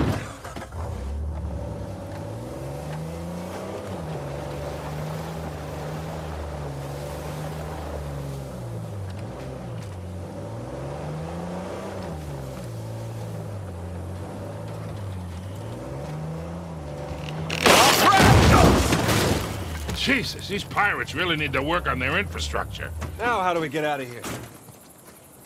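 An engine hums and revs as a vehicle drives.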